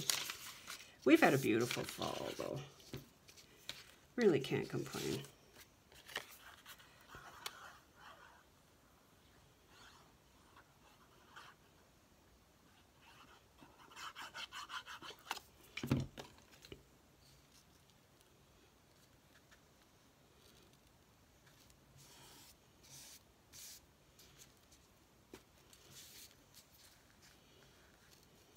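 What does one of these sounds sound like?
Paper rustles softly as hands handle and press it flat.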